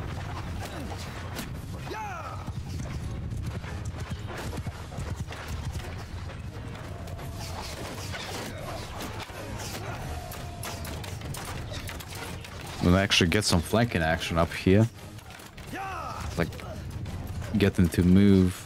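A horse walks with soft, steady hoofbeats.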